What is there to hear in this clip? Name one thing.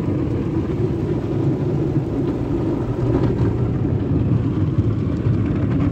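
Car wash brushes rumble and slap against a car.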